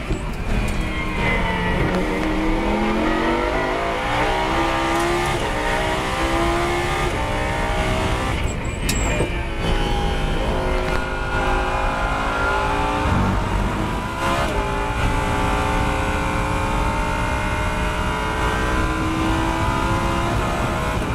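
A race car engine roars loudly from inside the cabin, revving up through the gears.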